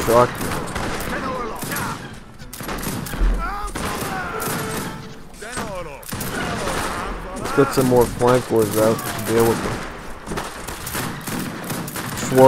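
Muskets fire and weapons clash in a battle.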